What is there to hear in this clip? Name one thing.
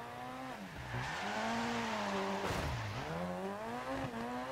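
Tyres spray water and slush as a car slides.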